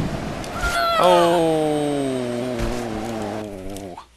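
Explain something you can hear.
A giant creature lets out a deep, falling groan.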